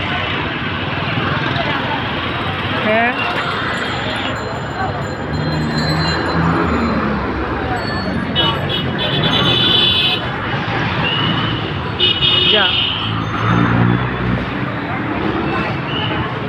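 Motorbike engines rev and drone close by.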